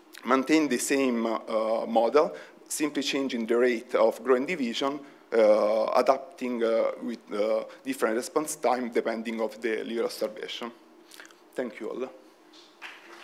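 A young man speaks calmly into a microphone in a large hall.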